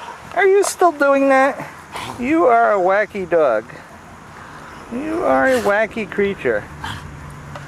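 A dog grunts and growls playfully.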